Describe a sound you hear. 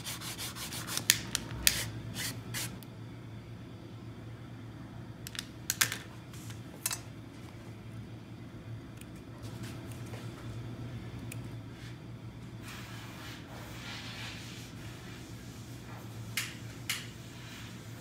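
Objects knock and tap on a hard surface.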